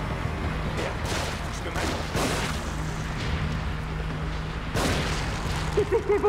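Gunshots ring out.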